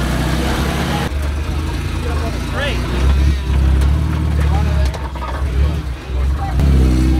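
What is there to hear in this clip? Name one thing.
A truck engine rumbles and revs as it crawls over rocks.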